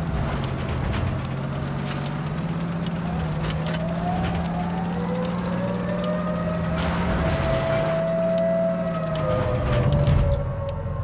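A tank engine rumbles low and steady as it drives.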